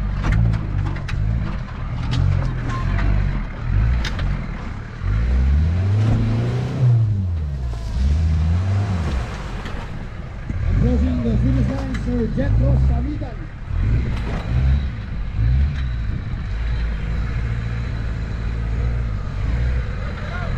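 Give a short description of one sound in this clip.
Tyres crunch over loose dirt and stones.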